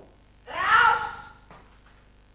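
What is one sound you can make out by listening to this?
A woman cries out loudly.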